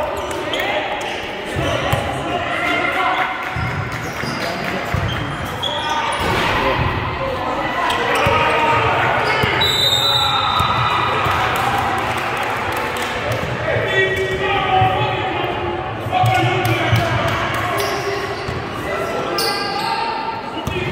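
Young men shout and call out across a large echoing gym.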